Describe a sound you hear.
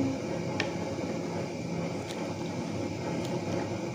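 A wooden spoon stirs and swishes through water in a pot.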